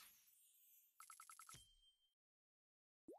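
Game coins clink in a quick run.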